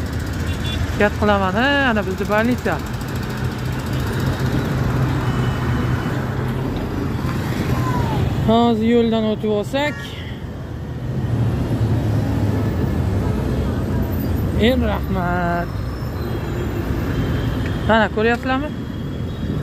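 Vehicle horns honk several times.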